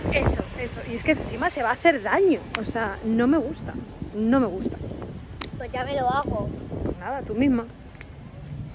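A young woman talks casually and close up.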